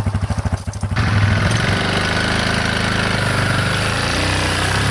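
A quad bike engine revs up loudly and pulls away.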